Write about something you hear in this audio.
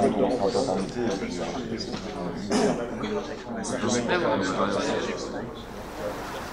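A man speaks calmly across a room.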